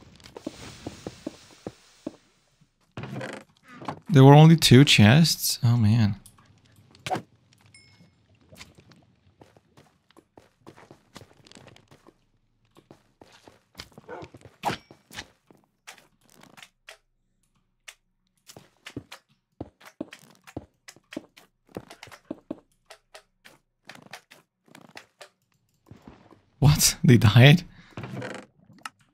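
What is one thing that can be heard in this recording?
Blocks crack and break with quick, short clicks.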